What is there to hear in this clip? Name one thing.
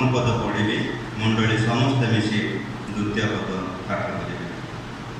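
A man speaks through a microphone and loudspeaker in an echoing room.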